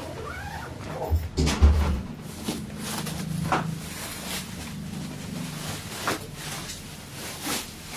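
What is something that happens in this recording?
Bubble wrap crinkles and rustles as it is handled.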